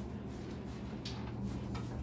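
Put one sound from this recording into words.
A spray bottle squirts.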